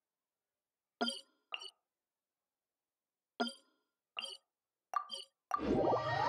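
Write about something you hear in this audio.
Short game menu clicks tick one after another.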